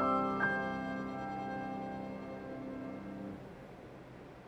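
A violin holds a final note.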